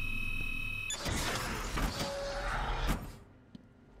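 A heavy metal shutter door rumbles and grinds as it slides open.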